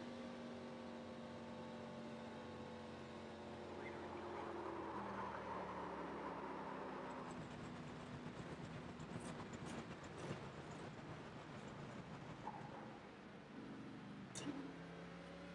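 A race car engine roars steadily, dropping in pitch as the car slows.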